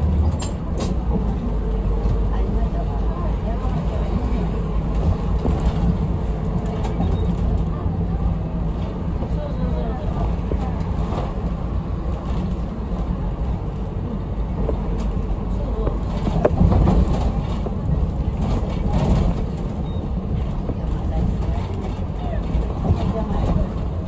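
A bus engine hums steadily from inside as the bus drives along a street.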